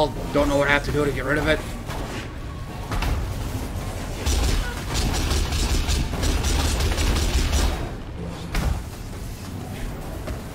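Magic spells crackle and boom in a video game.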